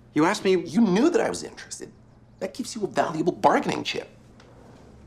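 A middle-aged man speaks nearby in a low, dry voice.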